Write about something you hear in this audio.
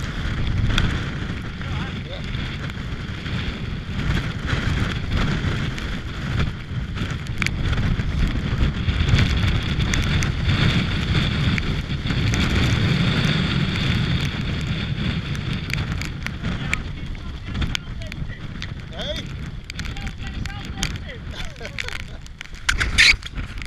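Strong wind roars and buffets loudly against a microphone outdoors.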